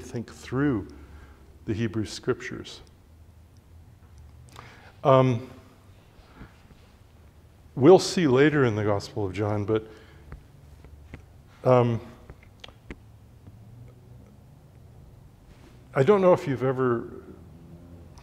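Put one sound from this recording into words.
An older man speaks calmly in short bursts with long pauses.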